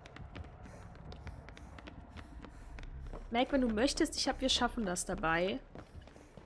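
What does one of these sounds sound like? Footsteps run across wooden boards.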